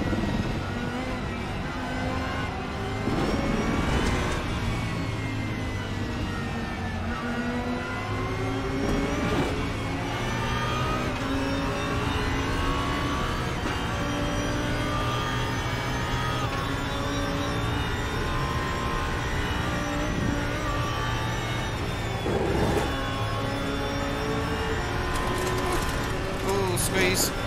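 A race car engine roars steadily, rising and falling in pitch as gears shift.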